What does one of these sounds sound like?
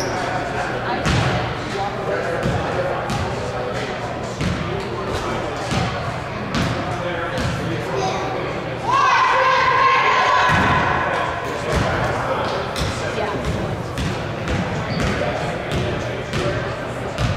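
Children and adults chatter in a large echoing hall.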